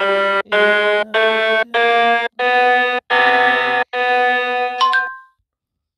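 Electronic piano notes play one after another.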